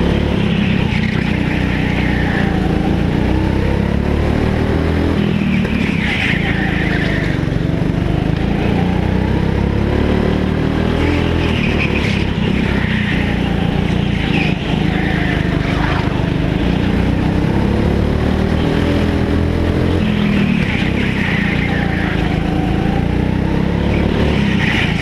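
A go-kart engine drones loudly and rises and falls in pitch as it speeds up and slows down.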